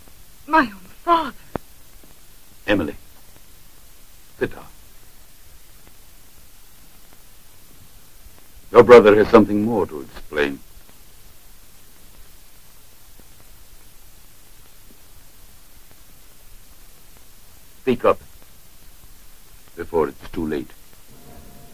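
A man speaks tensely, in short bursts, with pauses between.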